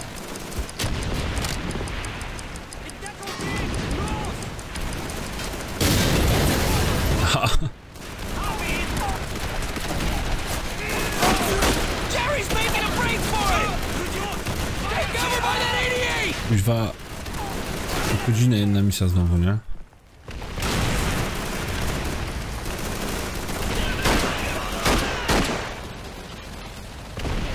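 Rifle shots crack in a game.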